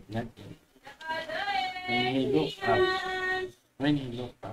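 A young child speaks in a high voice close to a microphone.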